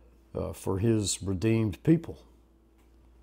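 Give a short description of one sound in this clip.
An elderly man speaks calmly and close to the microphone.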